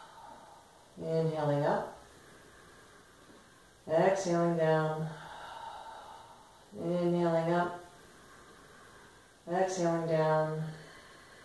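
A woman speaks calmly and slowly in short phrases, close by.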